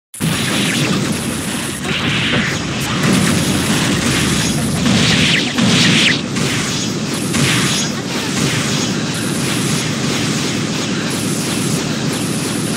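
Rapid electronic hit effects crash and whoosh in a fast barrage.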